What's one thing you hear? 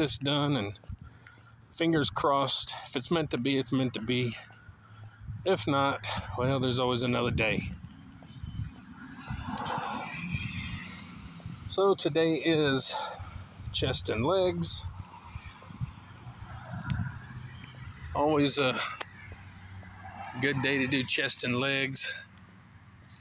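A middle-aged man talks calmly and close up.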